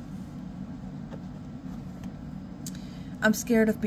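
A paper card slides out of a stack with a soft rustle.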